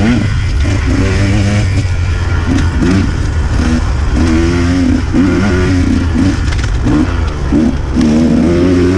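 A motorbike engine revs up and down, rising and falling in pitch.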